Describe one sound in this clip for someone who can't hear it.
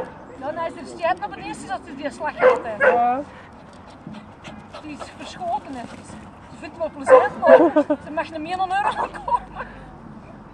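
A man calls out to dogs outdoors.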